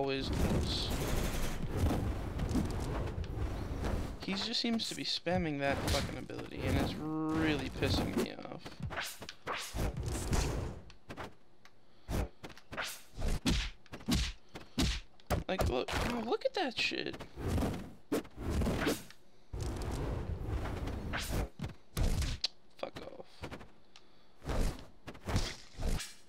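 Video game fighters trade punchy hits and smacks.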